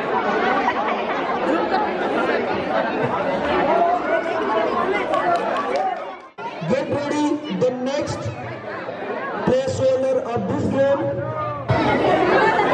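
Children talk and call out excitedly.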